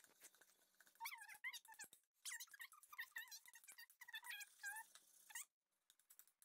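A spoon scrapes and squeaks against a plastic bowl while mixing.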